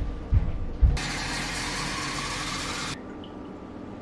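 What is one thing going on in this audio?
Tap water gushes into a glass jar.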